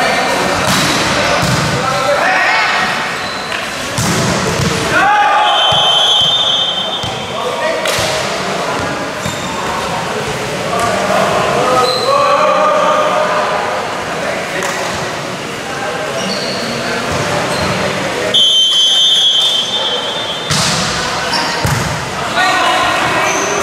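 A volleyball is struck with sharp slaps in a large echoing hall.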